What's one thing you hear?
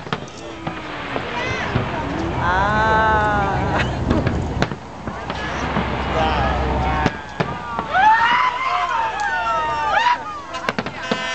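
A crowd of people cheers and whoops nearby.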